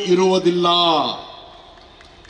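An elderly man speaks loudly with animation into a microphone over a loudspeaker.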